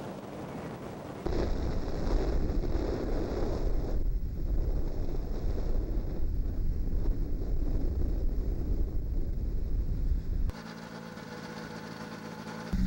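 A small aircraft engine drones steadily close by.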